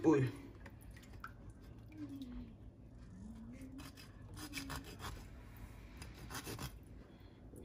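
A knife scrapes and cuts through fish.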